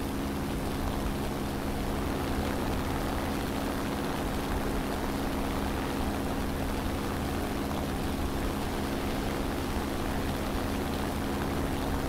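Twin propeller engines drone steadily at high power.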